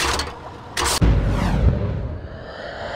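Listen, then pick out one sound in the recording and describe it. A loud burst roars and slowly fades.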